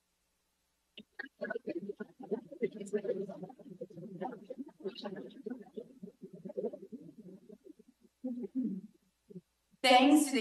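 A young woman speaks cheerfully through a microphone over a loudspeaker.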